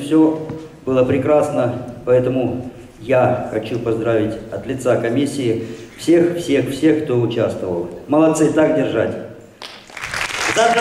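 A middle-aged man speaks with animation into a microphone over loudspeakers in a large hall.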